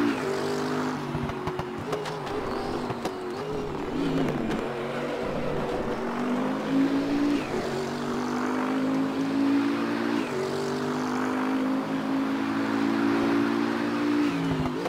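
A racing car engine roars loudly, dropping in pitch through gear changes and braking, then climbing steadily as it speeds up.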